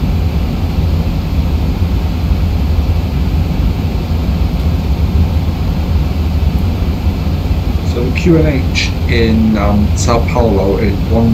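Jet engines drone steadily with a low, even rumble.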